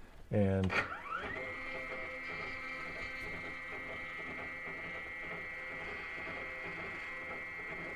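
A small motor whirs steadily as a machine's carriage moves.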